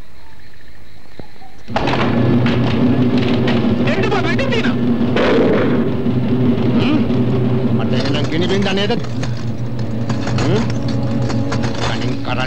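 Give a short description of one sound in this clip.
Heavy rain pours down.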